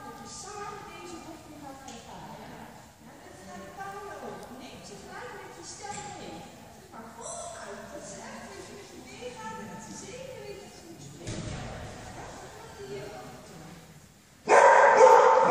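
Women talk calmly nearby in a large echoing hall.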